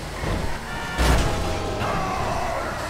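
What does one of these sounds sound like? A car crashes and scrapes along the road.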